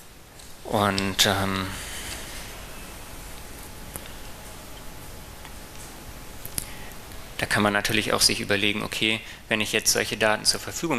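A man speaks calmly through a microphone, giving a talk.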